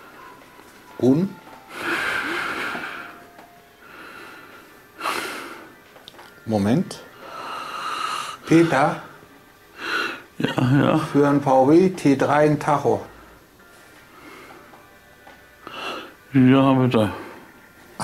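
A man talks on a phone, close by.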